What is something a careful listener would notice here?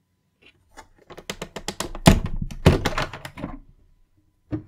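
Plastic latches on a case snap open with quick, sharp clicks.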